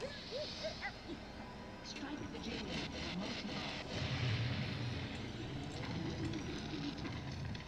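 Pinball game sounds chime and jingle with music.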